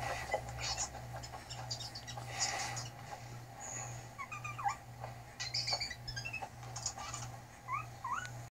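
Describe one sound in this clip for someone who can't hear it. Small creatures squeak and chirp shrilly through a television speaker.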